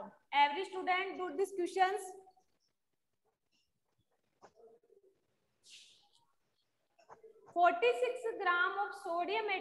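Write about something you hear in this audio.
A young woman speaks calmly into a clip-on microphone, explaining.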